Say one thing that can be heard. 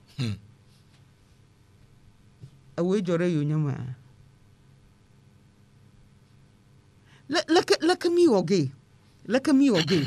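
A middle-aged woman speaks calmly into a close microphone, with pauses.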